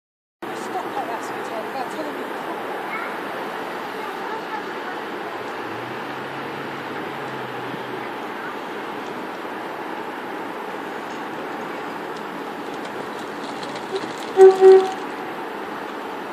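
A train rumbles as it approaches slowly.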